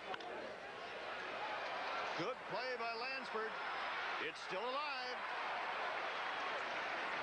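A stadium crowd cheers.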